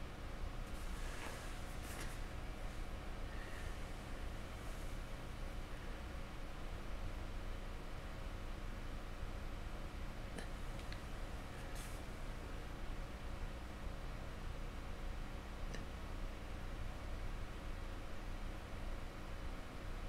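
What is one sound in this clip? A paintbrush taps and dabs lightly against a hard surface.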